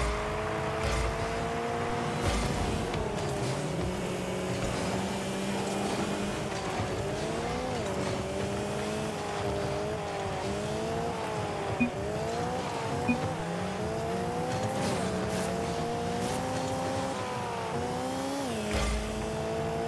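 A short whoosh sounds as a car collects a boost pad.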